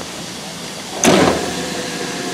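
A carriage door slams shut.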